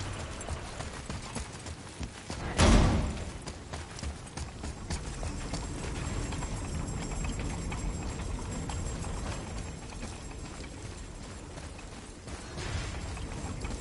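Heavy footsteps thud on a hard floor.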